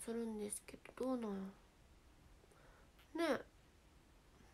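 A young woman speaks briefly and playfully, close by.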